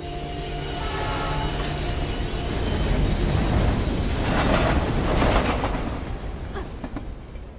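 A freight train rumbles loudly past, close by, then fades.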